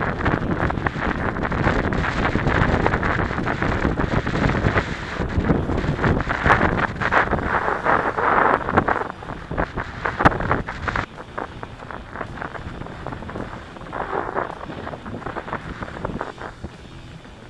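Bicycle tyres crunch and rattle over a rough dirt trail.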